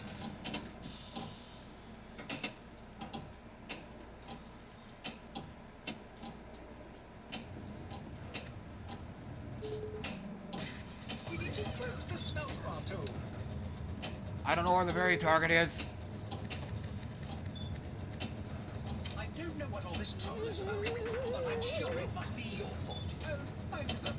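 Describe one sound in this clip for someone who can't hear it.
Pinball flippers and bumpers click and knock sharply.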